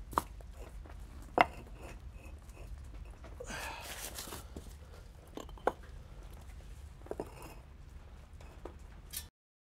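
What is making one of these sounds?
Small metal parts click and knock close by.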